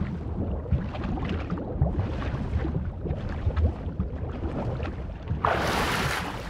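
Water gurgles in muffled bursts underwater.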